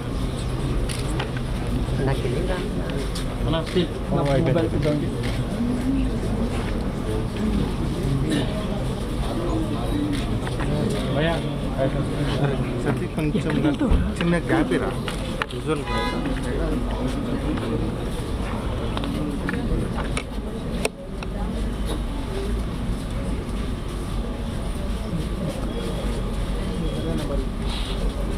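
A crowd of men murmurs and talks quietly nearby.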